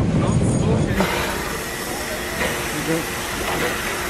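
A steam locomotive hisses loudly, close by.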